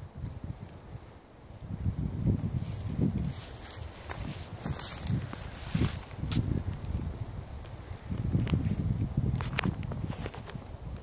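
Footsteps crunch and rustle on dry leaves and twigs.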